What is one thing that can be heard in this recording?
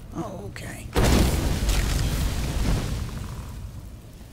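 A spell bursts with a loud crackling blast.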